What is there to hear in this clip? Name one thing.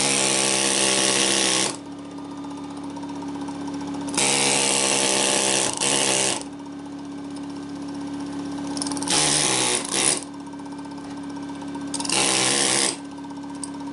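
A pneumatic air chisel hammers rapidly in short bursts.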